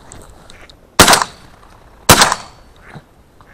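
A shotgun fires twice nearby, each blast echoing across open ground.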